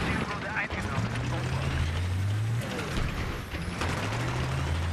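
A tank engine rumbles and drones steadily.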